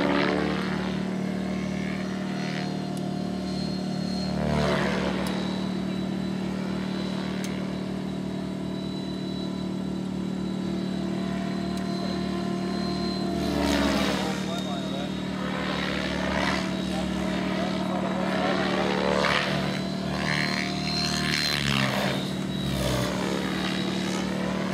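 A model helicopter's engine whines steadily overhead, rising and falling as it flies past.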